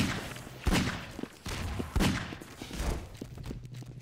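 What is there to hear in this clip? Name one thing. A gun fires in sharp, loud bangs.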